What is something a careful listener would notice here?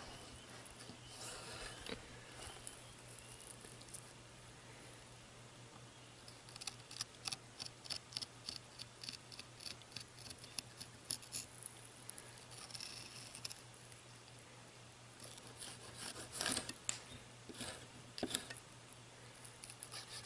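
A knife scrapes and clicks against fish bones on a wooden board.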